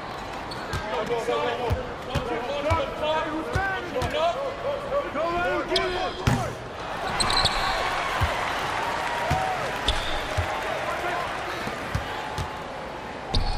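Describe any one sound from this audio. A basketball bounces on a hard court in steady dribbles.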